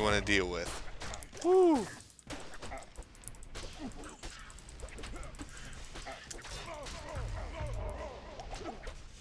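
Swords clash and hit monsters in rapid blows.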